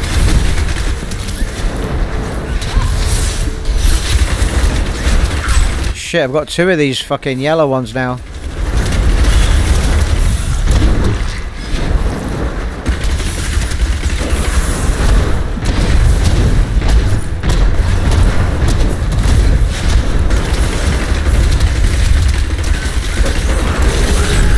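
Spells crackle and blast in a fast game battle.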